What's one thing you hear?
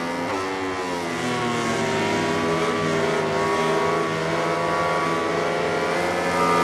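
Racing motorcycle engines whine loudly at high revs, rising and falling in pitch.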